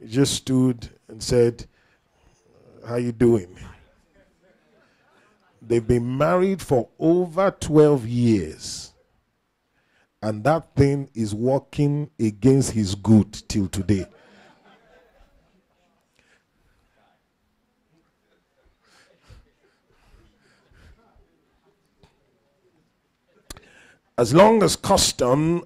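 A man preaches with animation through a microphone, in bursts with long pauses.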